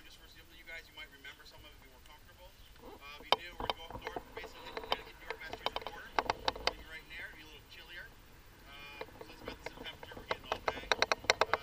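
Several men talk and chat casually outdoors nearby.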